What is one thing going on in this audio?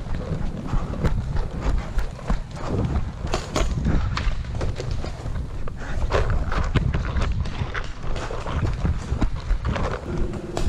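Footsteps run quickly over dry dirt and grass.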